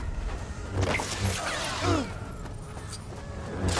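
Small coins jingle and chime as they are picked up.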